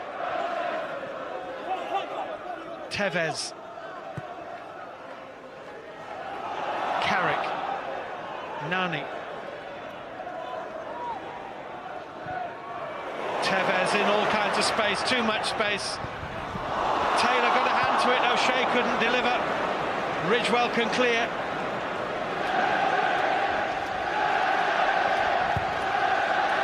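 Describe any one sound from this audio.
A large stadium crowd roars and chants, swelling louder toward the end.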